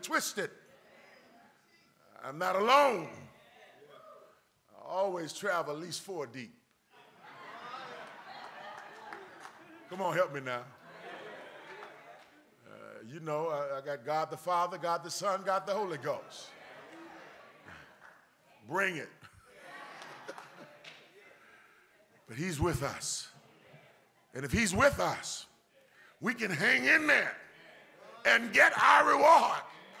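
A man preaches with passion through a microphone in a large echoing hall, his voice rising and falling in bursts.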